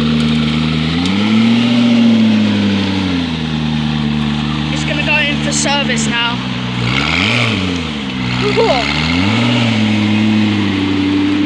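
A sports car engine revs up and drops back several times.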